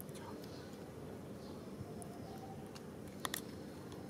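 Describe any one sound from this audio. A small monkey nibbles and chews food quietly.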